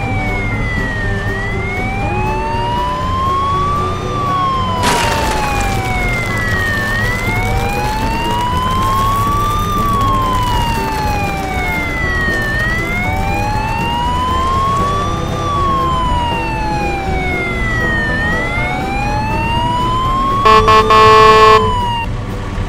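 A police siren wails, slowly rising and falling.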